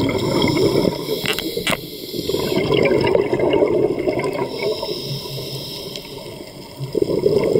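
Air bubbles gurgle and rush out underwater.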